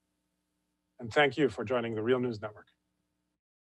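A middle-aged man speaks with animation over a remote call.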